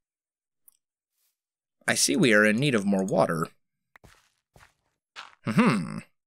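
Dirt crunches as it is dug, a few times.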